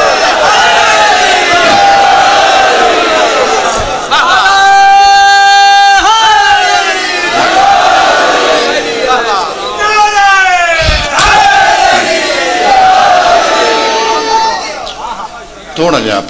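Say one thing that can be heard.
A middle-aged man speaks passionately into a microphone, his voice rising into long drawn-out wails over a loudspeaker.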